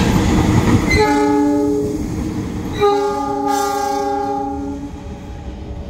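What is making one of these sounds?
A locomotive horn blares in two long blasts.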